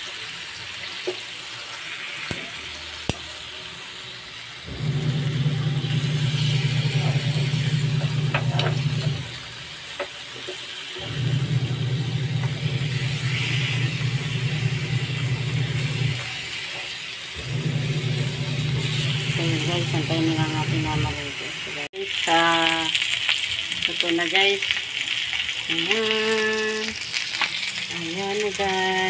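Meat sizzles in a hot pan.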